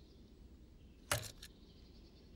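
A scooter's kickstand clanks down.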